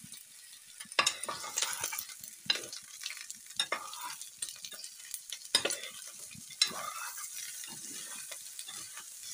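A metal spoon scrapes and clatters against a pan while stirring vegetables.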